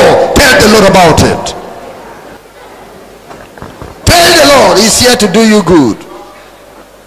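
A man preaches loudly through a microphone over loudspeakers.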